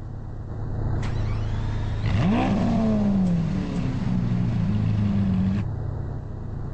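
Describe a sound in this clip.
A car engine starts and revs.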